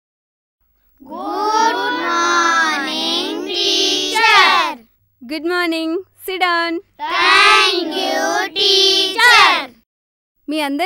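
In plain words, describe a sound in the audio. A group of children chant loudly together in unison.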